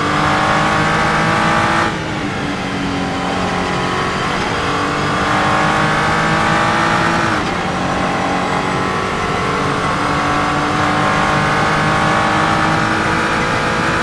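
A racing car engine roars at high revs, dropping sharply on gear changes and climbing again.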